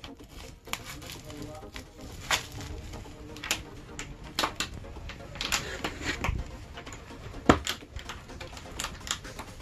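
Paper crinkles and rustles as hands unwrap a small package.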